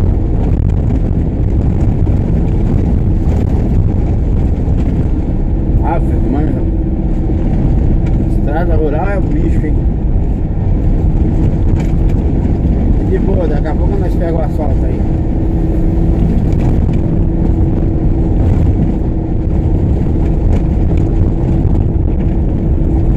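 Tyres rumble and crunch on a dirt road.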